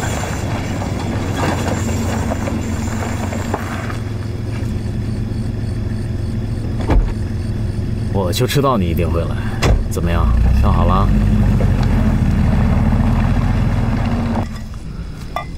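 A car drives slowly away over gravel.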